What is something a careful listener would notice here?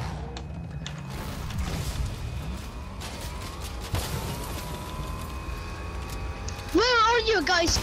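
A car engine hums and revs as the car drives off.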